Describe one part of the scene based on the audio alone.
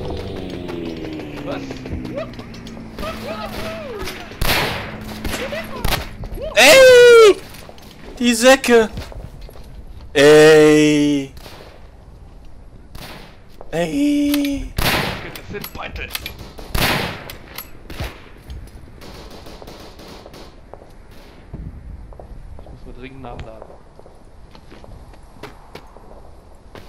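Gunshots crack sharply, some near and some farther off.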